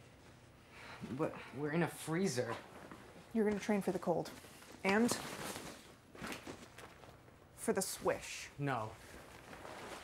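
A young man speaks flatly, close by.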